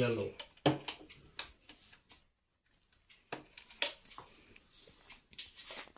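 Plastic clicks and snaps as small lids are opened on a printer.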